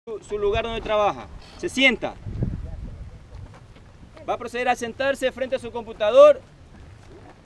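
A man speaks loudly close by, outdoors.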